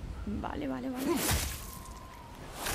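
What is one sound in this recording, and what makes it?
Ice shatters with a sharp crash.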